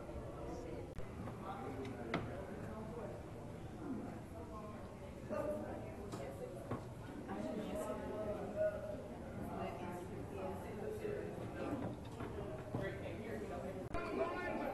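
A crowd of visitors murmurs and chatters in an echoing hall.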